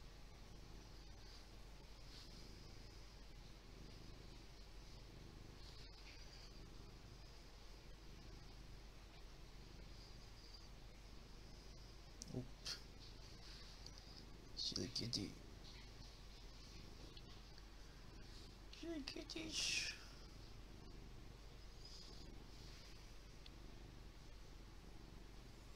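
A hand softly rustles a cat's fur while stroking it.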